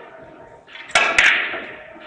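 A cue strikes a billiard ball with a sharp tap.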